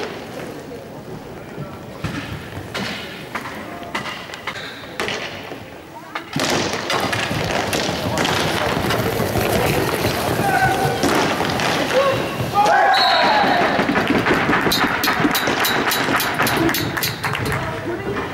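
Skate wheels roll and rumble on a hard floor.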